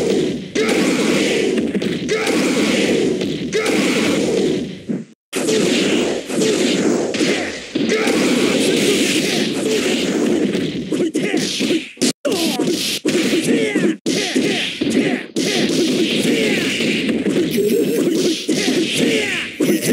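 Punches and kicks land with sharp smacks.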